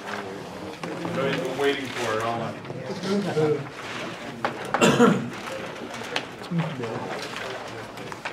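Large paper sheets rustle as they are flipped over.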